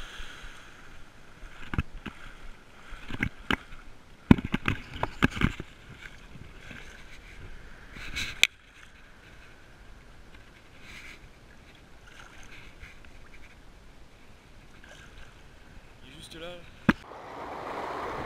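Small waves wash and splash in shallow water.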